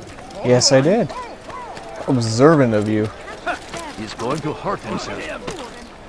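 Footsteps run quickly over stone and wooden planks.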